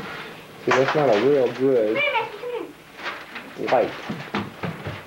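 A young girl talks in a sing-song voice close by.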